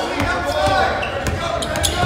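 A basketball is dribbled on a hardwood court.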